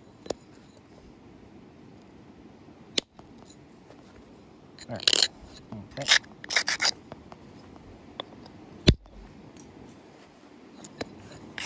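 An antler tool presses and scrapes against the edge of a stone, snapping off flakes with sharp clicks.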